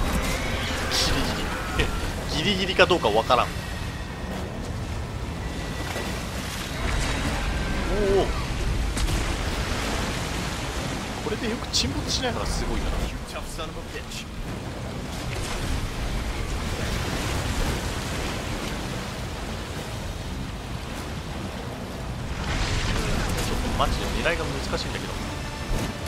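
Water churns and rushes around a small boat.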